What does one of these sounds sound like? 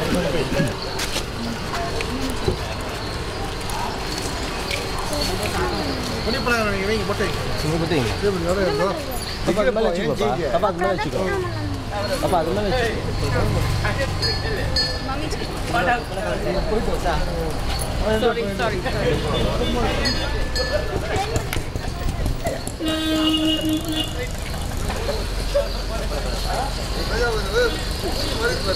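Several men and women talk and call out nearby, outdoors.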